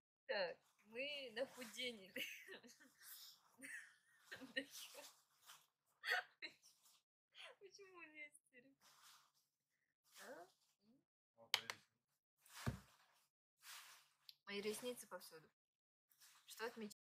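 A young woman talks close by, with animation.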